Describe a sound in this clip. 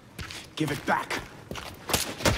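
A man speaks tensely nearby.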